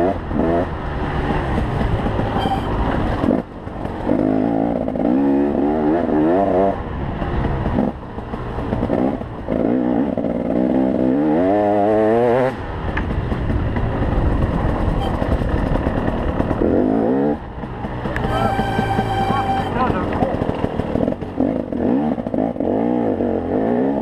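A dirt bike engine revs hard, rising and falling in pitch.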